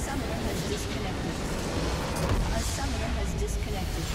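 A structure explodes and crumbles with a loud blast.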